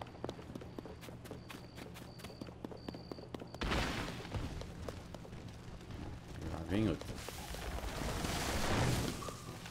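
Quick footsteps patter over grass and dirt.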